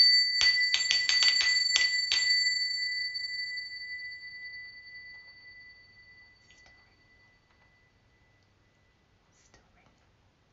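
Small hand cymbals chime rapidly, then ring out and slowly fade.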